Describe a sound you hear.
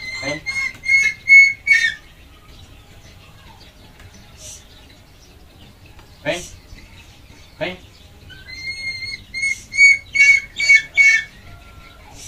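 A bird of prey gives shrill, repeated cries close by.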